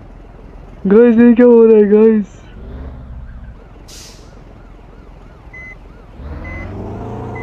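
A bus engine rumbles and revs.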